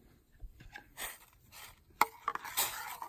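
A metal pot clanks down onto a metal stove.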